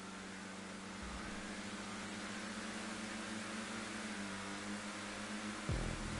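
Other race car engines drone close by.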